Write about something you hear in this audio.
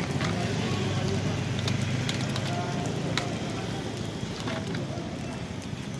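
Batter balls sizzle softly in a hot pan.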